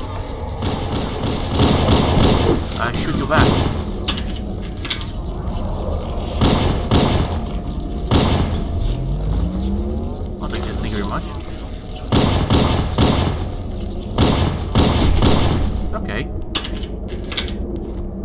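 Gunshots fire in rapid bursts with loud bangs.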